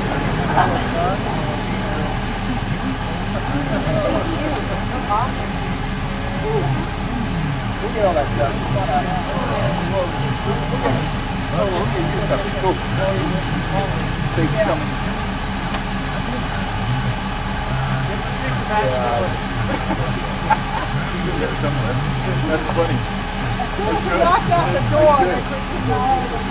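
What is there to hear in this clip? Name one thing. A car engine idles steadily.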